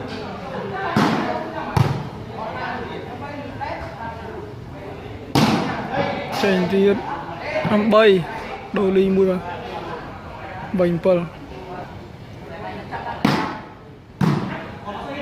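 Players kick a ball with sharp thumps.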